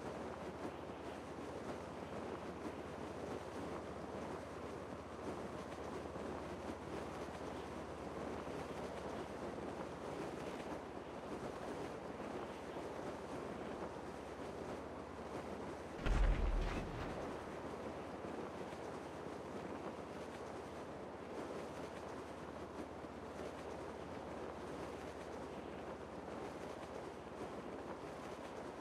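Wind rushes steadily past a parachutist gliding through the air.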